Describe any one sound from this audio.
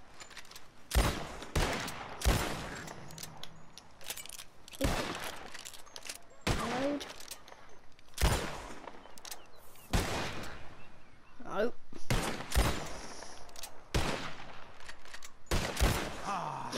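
Shotguns fire repeatedly outdoors, each blast echoing.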